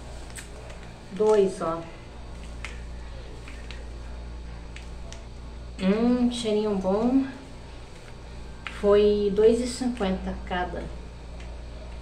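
Plastic wrappers crinkle in a woman's hands.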